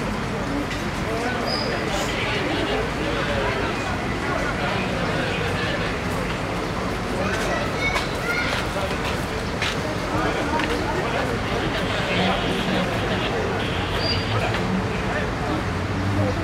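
A fire truck engine idles with a low steady rumble.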